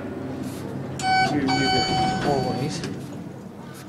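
An elevator chime rings.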